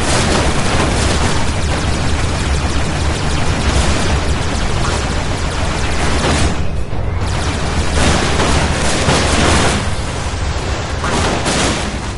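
Laser blasts fire rapidly.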